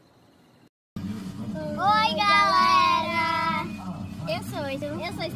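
Young girls sing together close by.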